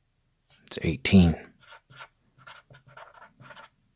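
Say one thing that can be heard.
A marker squeaks as it writes on paper.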